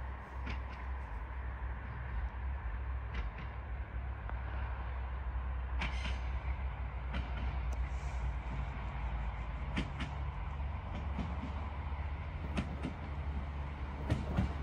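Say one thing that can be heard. A train approaches with a steady low rumble that slowly grows louder.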